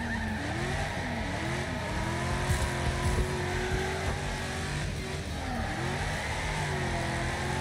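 Tyres screech as a car slides.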